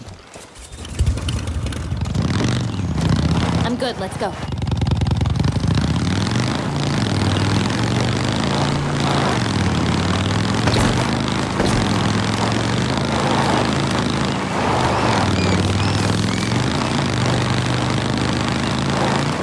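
A motorcycle engine starts and revs steadily while riding.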